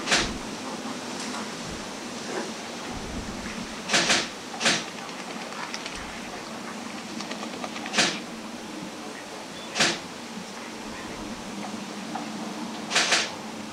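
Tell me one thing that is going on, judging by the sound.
Large wading birds give harsh, loud calls now and then across open water.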